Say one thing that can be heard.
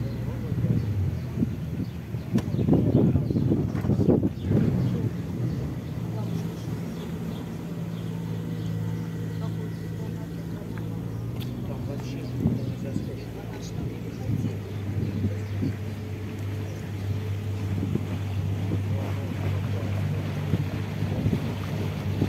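A boat engine hums steadily at a low pitch.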